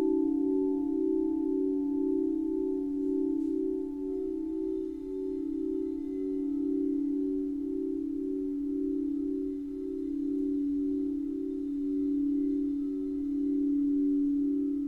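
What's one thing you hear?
Crystal singing bowls ring with a steady, pulsing hum as a mallet circles their rims.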